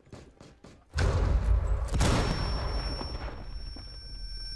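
An explosion blasts through a wall with a loud boom.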